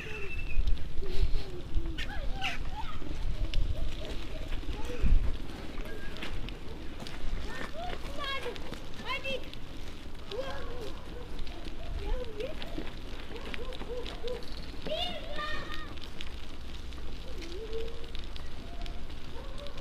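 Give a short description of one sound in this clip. Bicycle tyres hiss on a wet road.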